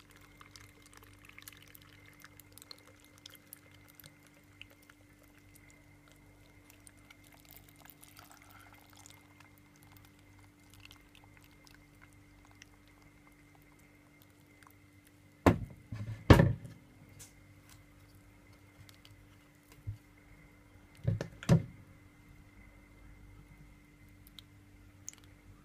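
Water pours and trickles softly.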